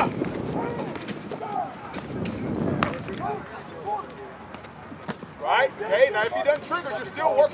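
Men call out and shout across an open field outdoors.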